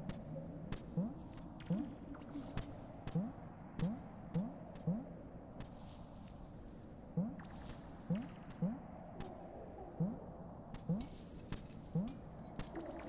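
Soft rising blips sound again and again as a small creature hops.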